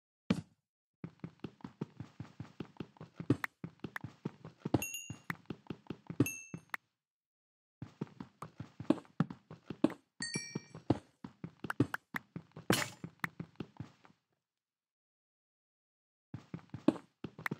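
A pickaxe chips rapidly at stone in quick, even taps.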